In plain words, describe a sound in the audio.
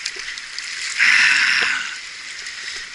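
Water splashes as a net lifts out of a stream.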